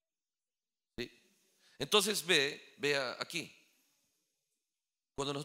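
A man speaks earnestly into a microphone.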